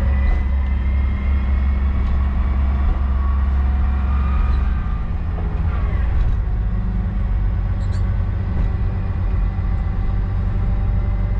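Train wheels clatter over the track joints.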